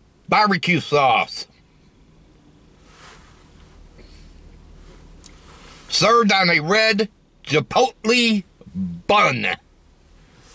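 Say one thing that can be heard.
A middle-aged man speaks loudly and with animation close by.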